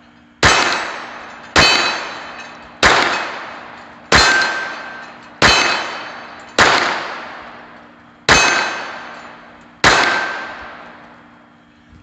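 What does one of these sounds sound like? A .22 pistol fires shots outdoors, each crack echoing off the hills.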